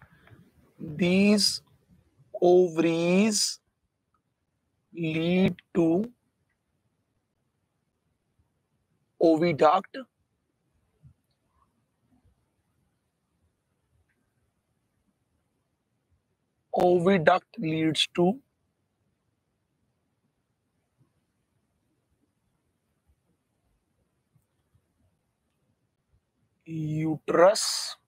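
A man speaks calmly into a close microphone, in short phrases with long pauses.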